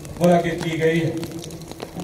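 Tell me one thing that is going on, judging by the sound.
Several men clap their hands.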